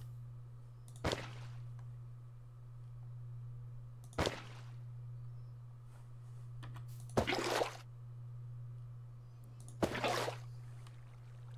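A bucket of water splashes as it is emptied and filled.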